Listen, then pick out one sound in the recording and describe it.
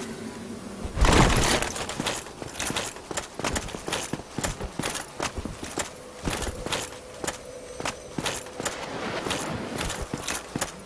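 Metal weapons clash and thud repeatedly in a close fight.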